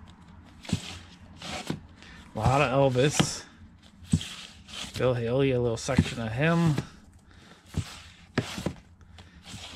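Cardboard record sleeves knock and rustle as a hand flips through them.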